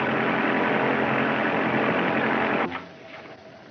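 An open-cockpit biplane engine roars in flight.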